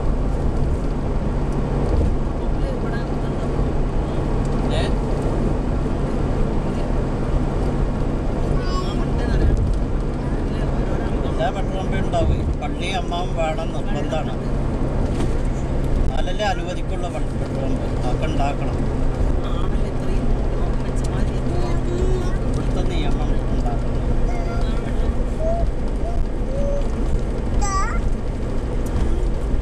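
Tyres roar steadily on a highway.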